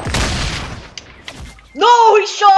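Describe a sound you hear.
A gun fires several quick shots.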